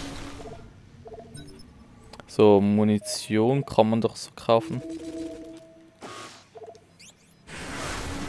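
Menu beeps and chimes sound in quick succession.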